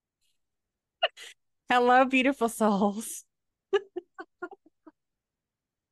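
A second woman laughs and talks over an online call.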